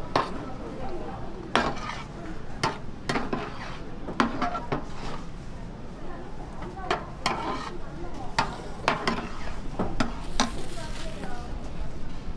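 Thick sauce bubbles and simmers in a pan.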